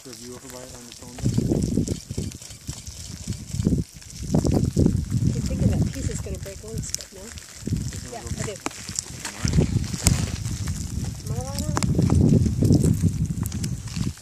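Molten lava crackles and snaps as it flows.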